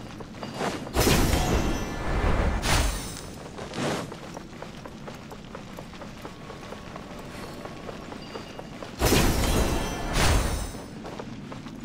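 A magical burst whooshes and shimmers loudly.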